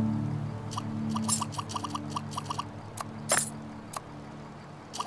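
Short electronic clicks tick in quick succession as building blocks snap into place.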